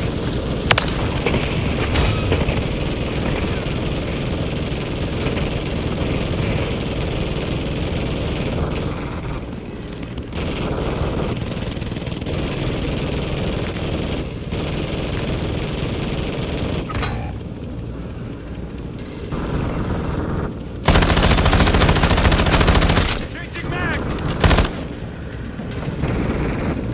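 A helicopter engine roars steadily with thudding rotor blades.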